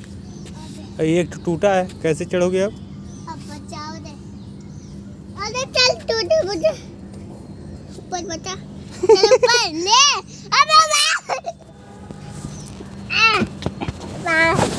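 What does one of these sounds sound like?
A young child talks and babbles close by.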